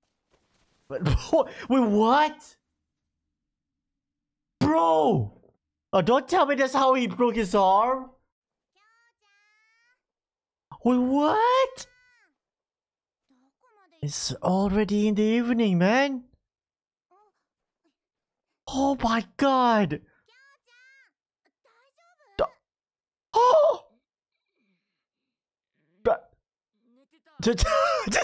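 A young man talks with animation close to a microphone, in bursts between pauses.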